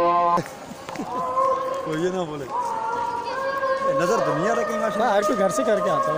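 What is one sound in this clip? A man speaks cheerfully and close by.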